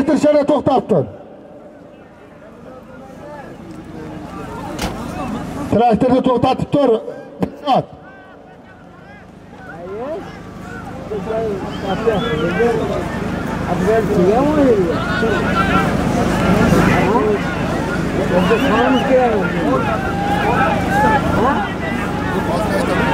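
A large crowd of men shouts and calls out across open ground.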